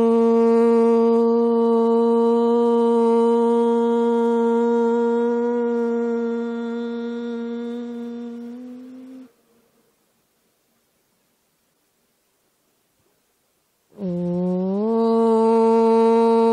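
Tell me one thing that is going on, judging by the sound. An older woman sings a long, steady held note into a microphone, fading out, then starts a new note.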